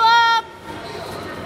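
A whistle blows sharply.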